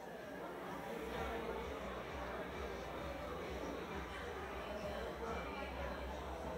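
A crowd of people murmur and chat.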